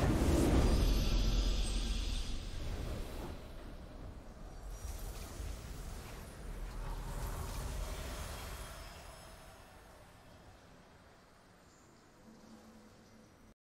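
A triumphant game victory fanfare swells and slowly fades away.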